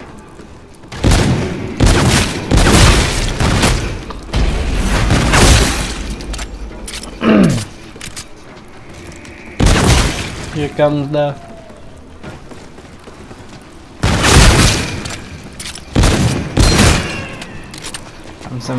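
Gunfire bursts loudly in rapid volleys.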